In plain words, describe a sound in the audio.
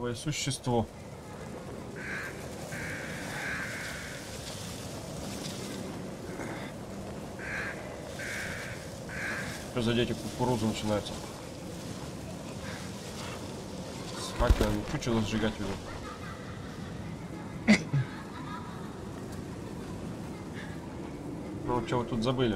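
A young man talks calmly into a nearby microphone, in short bursts.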